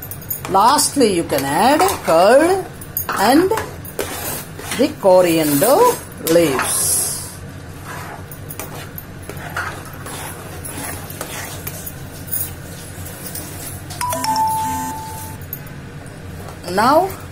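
A spatula stirs and scrapes thick sauce in a metal pan.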